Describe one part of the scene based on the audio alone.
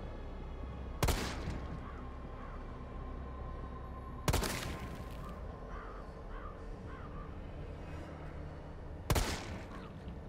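A handgun fires single loud shots that echo down a street.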